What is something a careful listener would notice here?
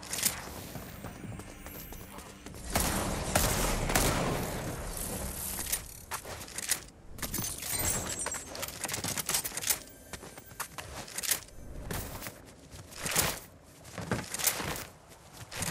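Quick footsteps clatter on a metal floor.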